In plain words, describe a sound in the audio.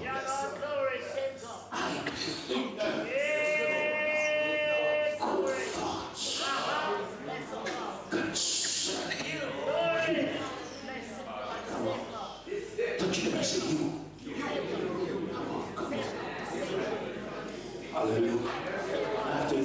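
A middle-aged man preaches fervently into a microphone, heard through loudspeakers in an echoing hall.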